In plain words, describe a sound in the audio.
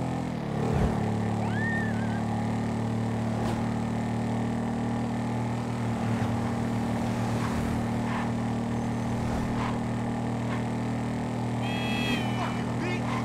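A motorcycle engine drones at speed.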